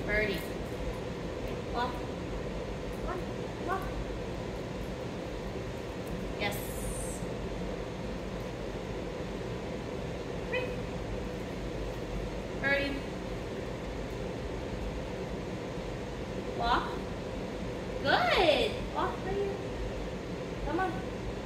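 A young woman gives short, upbeat commands to a dog nearby.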